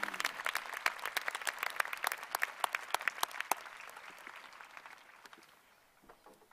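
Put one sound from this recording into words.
An audience claps and then fades away.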